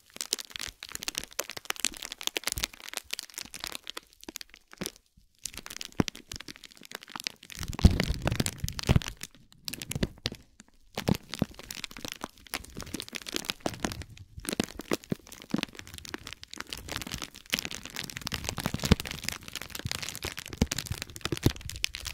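Fingers press and crinkle bubble wrap close to the microphone, with soft popping and crackling.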